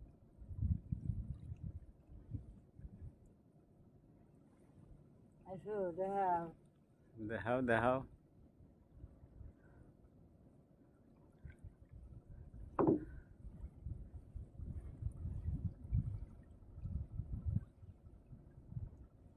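A fishing net splashes as it is pulled from the water.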